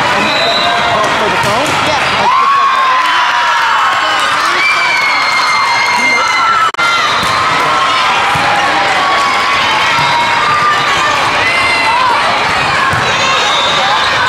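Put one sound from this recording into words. A volleyball is struck with hard slaps.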